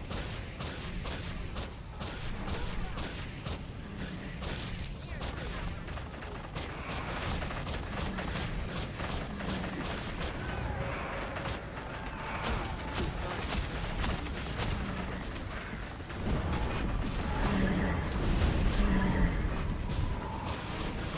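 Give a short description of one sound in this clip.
Spell blasts and weapon hits crackle and thump in a fast, busy fight.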